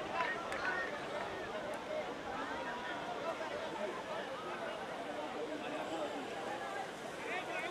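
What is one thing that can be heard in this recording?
Young women cheer and laugh loudly close by.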